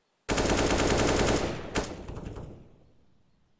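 A rifle fires a loud rapid burst of shots that echoes away.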